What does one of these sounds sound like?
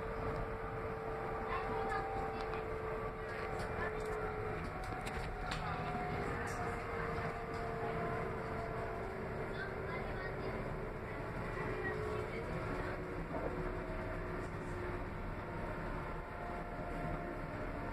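A train's wheels and motor whine with drawn-out tones.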